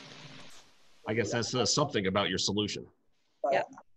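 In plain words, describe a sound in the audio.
A young man speaks through an online call.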